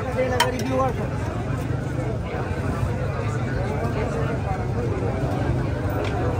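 A crowd of men chatters all around outdoors.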